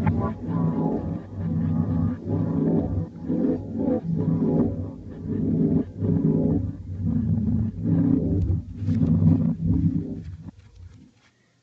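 A young child talks with animation through a small speaker.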